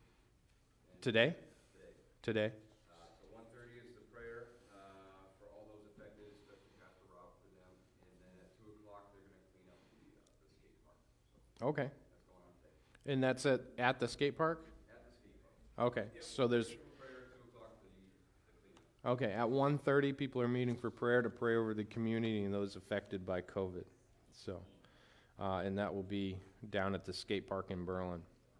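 A middle-aged man speaks calmly through a headset microphone in a large room, pausing now and then.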